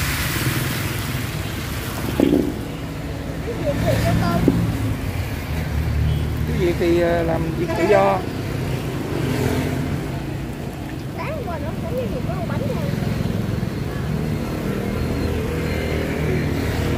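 Batter sizzles softly in a hot pan.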